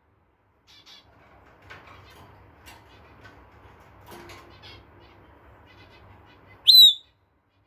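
A parrot chirps and mutters softly.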